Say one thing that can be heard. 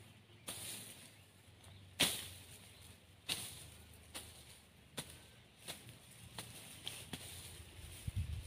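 Blades chop into weeds and soil with repeated sharp strokes.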